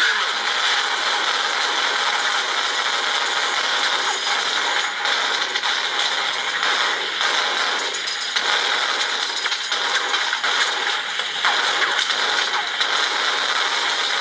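A rifle fires rapid bursts of gunshots.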